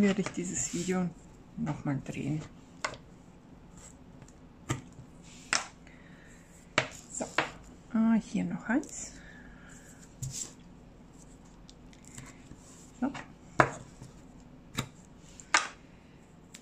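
Sticky tape peels and tears off a roll.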